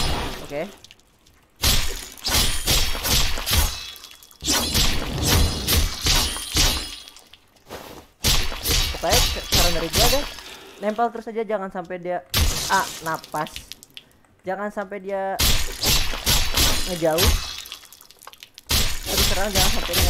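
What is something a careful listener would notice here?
Sword slashes and game effects whoosh and clash in bursts.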